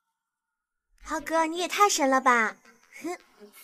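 A young girl speaks excitedly nearby.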